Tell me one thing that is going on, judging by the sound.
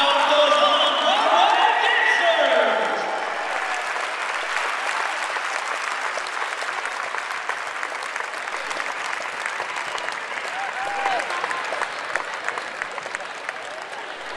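A crowd cheers and claps in a large echoing hall.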